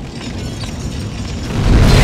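A fire roars steadily.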